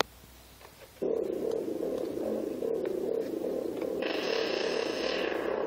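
A homemade synthesizer plays a steady buzzing electronic drone that turns harsher near the end.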